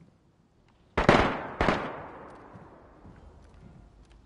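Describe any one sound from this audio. A rifle fires two loud shots that echo away into the distance.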